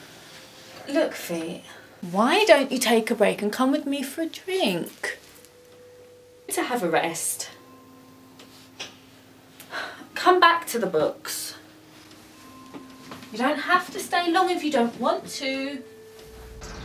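A young woman speaks close by in an upset voice.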